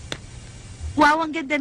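A young woman speaks loudly close by.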